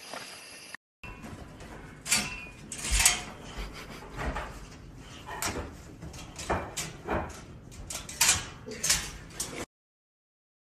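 A metal cage latch rattles and clicks.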